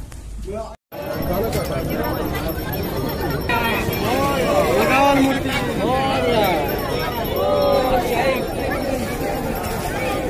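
A crowd of men and women chants loudly outdoors.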